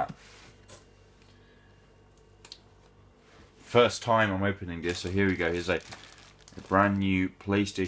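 A plastic wrapping crinkles as it is handled.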